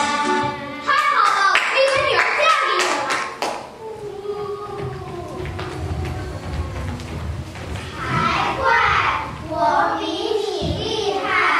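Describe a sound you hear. Young children speak and recite through a microphone in a hall.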